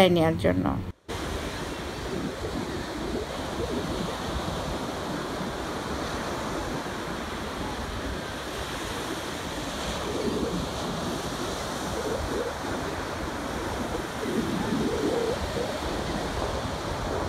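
Waves break and wash steadily onto a shore outdoors.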